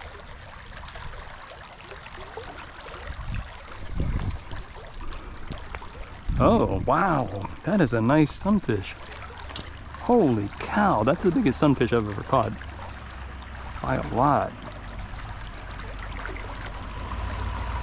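A stream gently flows and ripples.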